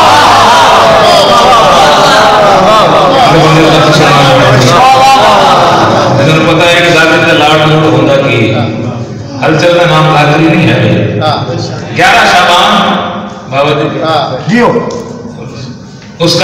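A man speaks forcefully into a microphone through a loudspeaker, his voice echoing in the room.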